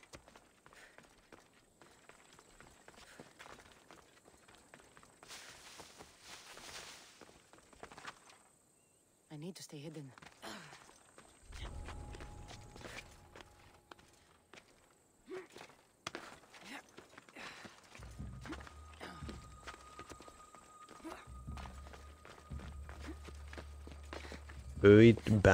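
Footsteps scrape on rock.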